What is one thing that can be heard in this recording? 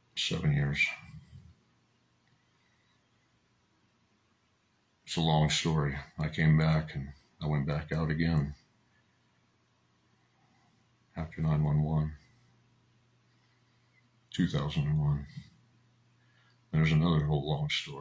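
A middle-aged man speaks calmly and closely into a microphone, in short phrases with pauses.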